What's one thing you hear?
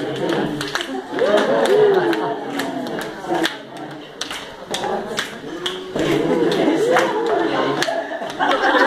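A crowd of young men and women cheers and whoops nearby.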